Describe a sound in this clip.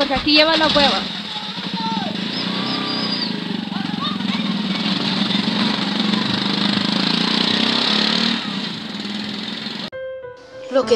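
A motor rickshaw engine idles and rumbles.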